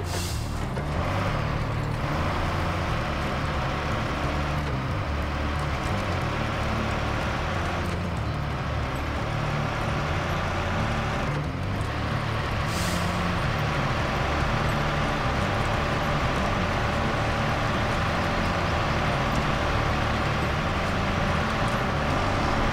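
A heavy truck's diesel engine rumbles and strains steadily.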